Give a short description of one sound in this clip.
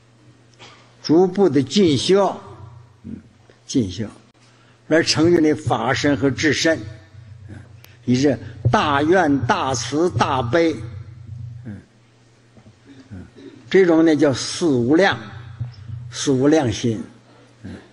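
An elderly man speaks slowly and calmly into a microphone, with pauses.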